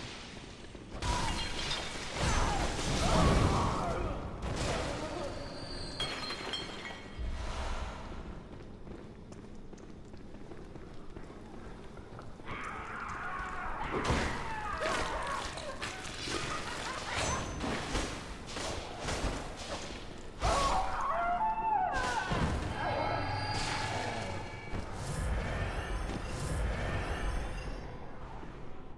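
Blades slash and thud into flesh.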